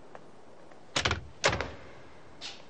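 A door bangs shut.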